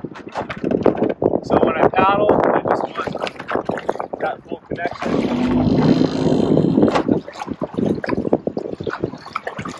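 Water laps gently against a canoe hull.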